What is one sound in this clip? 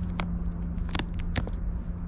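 A snack wrapper crinkles close by.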